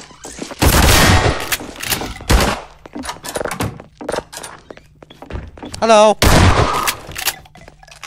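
A shotgun fires loud, booming blasts.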